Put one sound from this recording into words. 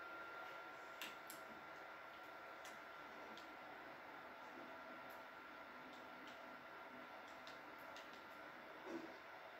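Short wooden building clicks and knocks sound from a television speaker.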